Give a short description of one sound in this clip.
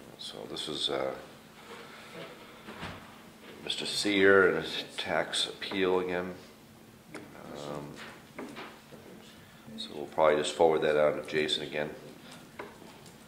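An elderly man speaks calmly, picked up by a table microphone.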